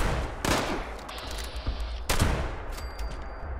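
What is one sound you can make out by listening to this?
A shotgun fires two loud blasts that echo briefly.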